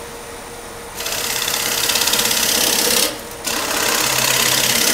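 A gouge cuts into spinning wood with a loud, rough hiss.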